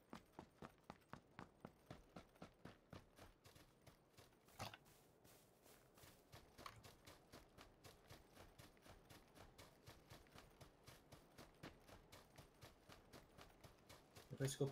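Footsteps run quickly and steadily through grass.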